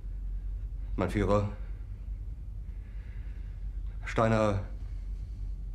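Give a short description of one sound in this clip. A middle-aged man speaks calmly and briefly.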